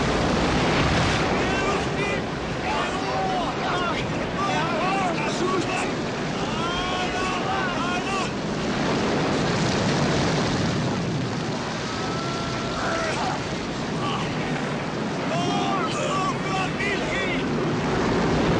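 Men shout in alarm over the storm.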